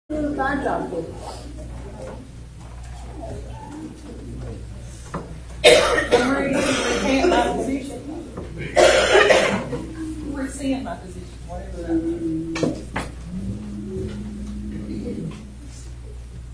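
Several adults talk and murmur in a large echoing hall.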